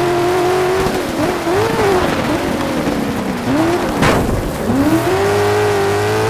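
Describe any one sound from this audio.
A racing car engine revs high, rising and falling as the gears shift.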